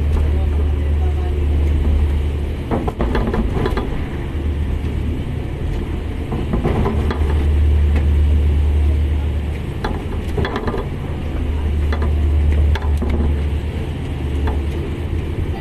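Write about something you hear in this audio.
Strong wind roars steadily outdoors.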